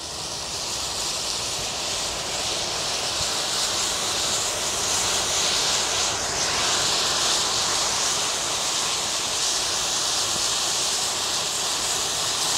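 Flames roar and rush steadily.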